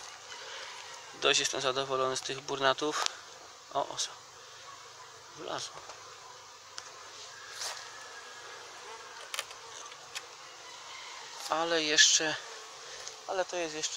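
Bees buzz softly.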